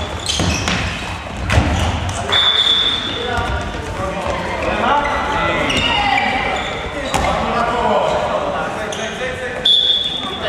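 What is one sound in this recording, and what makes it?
Boys shout and call out to each other in a large echoing hall.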